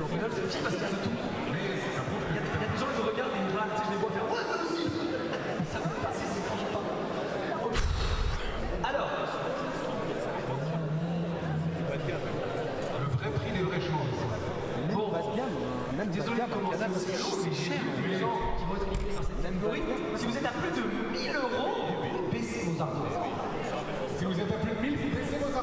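A young man talks excitedly close to a microphone.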